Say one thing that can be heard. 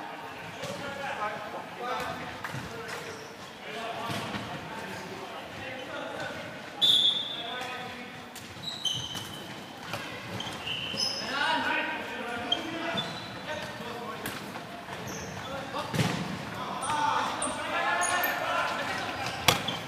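Young men shout to each other from across a large echoing hall.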